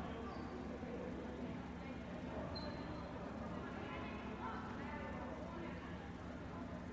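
Basketball shoes squeak on the hardwood court.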